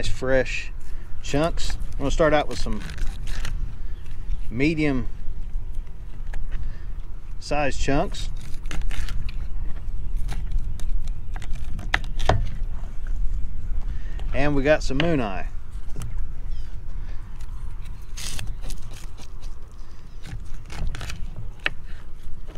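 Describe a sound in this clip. A knife cuts and scrapes through fish on a board.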